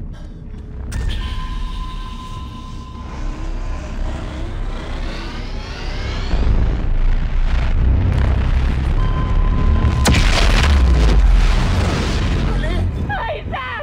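Electricity crackles and roars loudly, then dies away.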